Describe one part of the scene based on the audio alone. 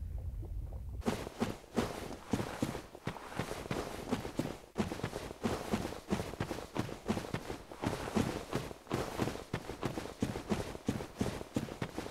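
Armoured footsteps crunch quickly over gravel.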